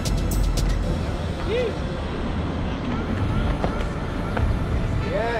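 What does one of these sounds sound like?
Skateboard wheels roll over pavement.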